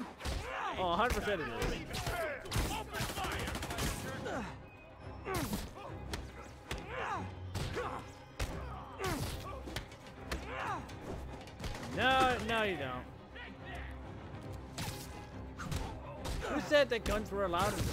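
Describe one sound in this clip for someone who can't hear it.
Punches and kicks land with sharp thuds during a fight.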